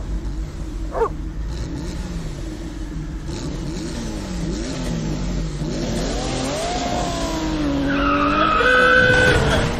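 A small car engine putters as a car drives past.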